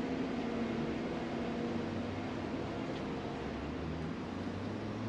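A bus engine idles with a steady low hum nearby and fades away.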